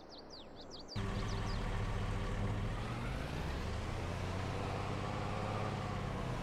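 A pickup truck engine drones loudly while driving.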